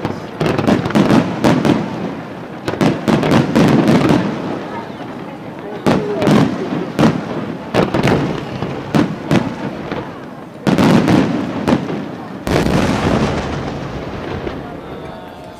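Fireworks burst with loud booms and bangs.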